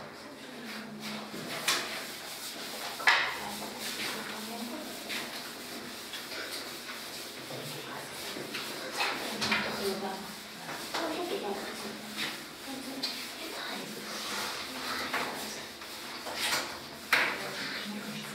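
A cloth rubs and swishes across a chalkboard.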